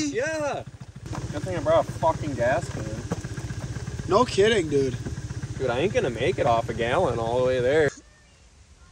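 A scooter engine idles with a low, rattling buzz.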